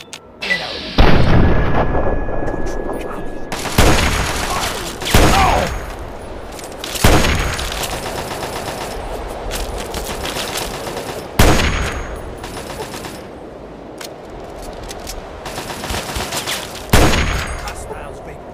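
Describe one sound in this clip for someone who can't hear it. Rifle shots crack loudly, one after another, each with a rolling echo.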